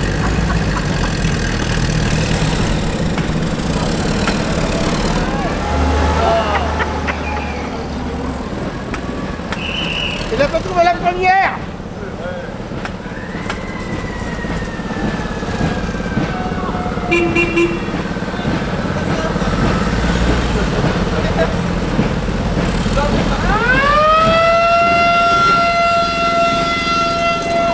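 A motorcycle engine idles nearby.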